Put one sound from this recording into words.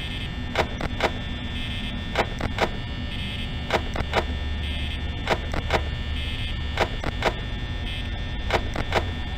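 An electric fan whirs steadily.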